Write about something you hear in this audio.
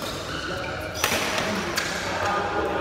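A badminton racket smacks a shuttlecock with a sharp crack.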